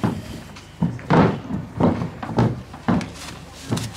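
Hooves clop on a hollow wooden ramp.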